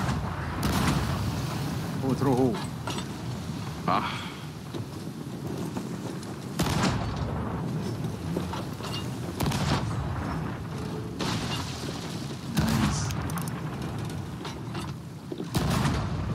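Cannonballs splash into the sea.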